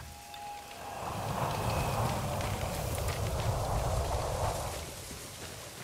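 Wind gusts loudly, then dies down.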